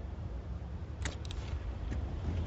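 A case snaps open with a metallic click.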